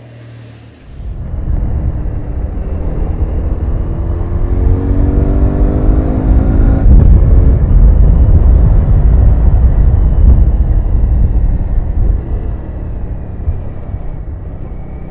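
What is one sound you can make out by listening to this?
A motorcycle engine roars loudly up close, revving up and down.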